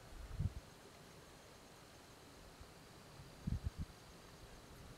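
A fishing rod bumps and knocks as it is handled close by.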